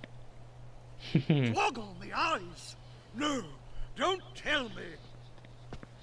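A young man exclaims with animation.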